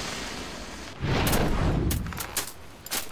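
A magic bolt bursts in a heavy explosion.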